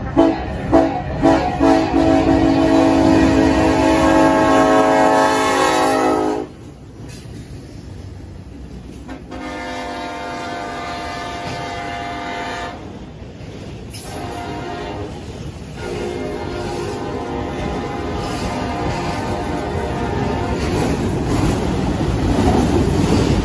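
A freight train rumbles past on the tracks.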